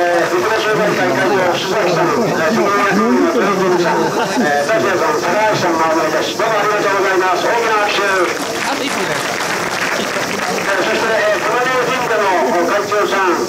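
Many people talk at once in a murmuring crowd.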